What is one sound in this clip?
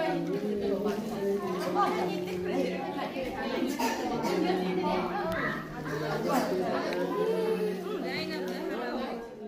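Several young women chat and laugh together nearby.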